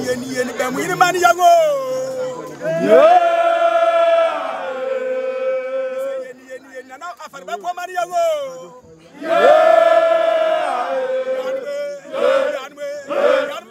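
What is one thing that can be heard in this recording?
A man chants loudly in long, drawn-out phrases.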